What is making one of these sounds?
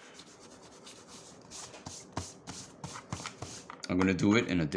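An eraser rubs briskly on paper.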